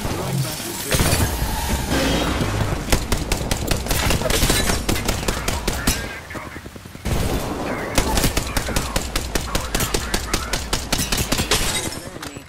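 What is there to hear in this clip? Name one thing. An automatic gun fires rapid bursts of shots.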